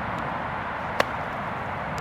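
A golf club sharply strikes a ball.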